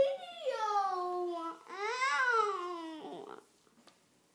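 A young girl sings out brightly close by.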